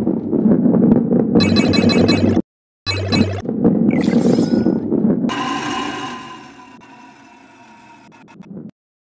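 A ball rolls along a wooden track with a low rumble.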